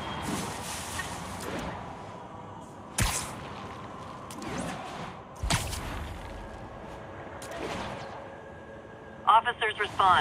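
Air rushes past in loud whooshes.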